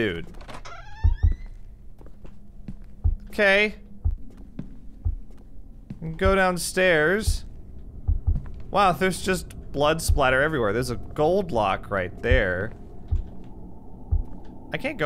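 Footsteps knock on wooden floorboards.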